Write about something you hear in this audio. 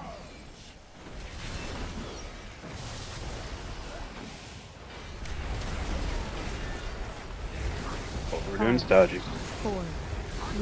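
Game spell effects whoosh and crackle in a busy battle.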